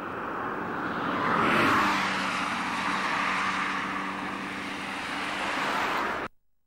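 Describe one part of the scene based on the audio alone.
A car drives past close by, its tyres hissing.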